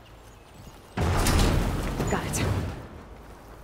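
A heavy wooden crate bursts open with a loud clatter.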